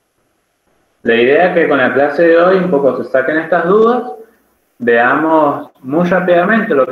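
A man talks through an online call.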